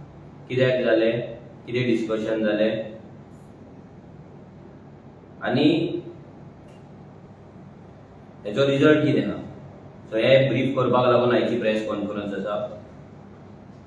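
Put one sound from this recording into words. A man speaks calmly into microphones, in short bursts with pauses.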